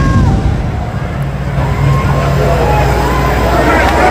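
A firework flare hisses and crackles overhead.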